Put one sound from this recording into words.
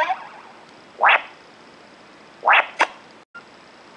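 Short electronic whooshes sweep upward.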